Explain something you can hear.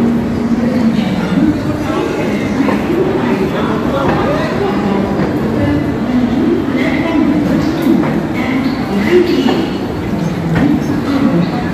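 A train rumbles and rattles as it rolls slowly along.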